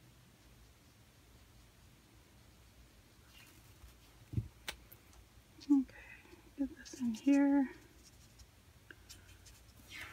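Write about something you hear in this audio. A marker squeaks and scratches softly across paper.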